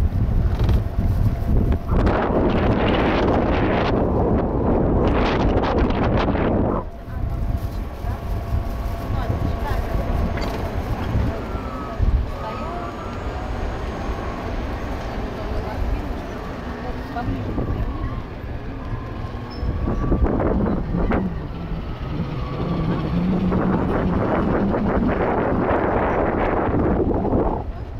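Wind rushes and buffets loudly against the microphone outdoors.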